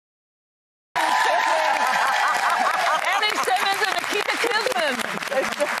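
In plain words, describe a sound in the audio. A studio audience applauds and cheers in a large room.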